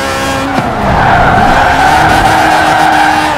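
Tyres squeal as a car slides through a bend.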